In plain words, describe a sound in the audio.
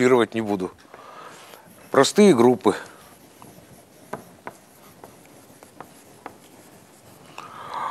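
An elderly man lectures aloud in an echoing room.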